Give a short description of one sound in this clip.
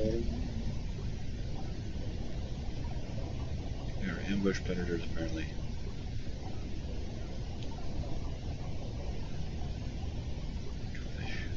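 Deep water rumbles steadily all around.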